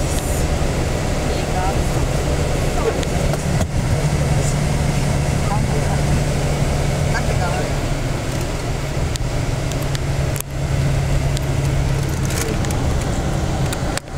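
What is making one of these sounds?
A bus engine hums steadily from inside the cabin.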